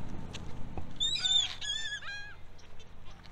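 Birds chirp nearby.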